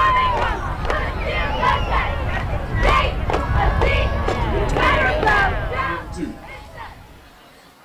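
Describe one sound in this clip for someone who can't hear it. A large crowd cheers and shouts loudly outdoors, then dies down.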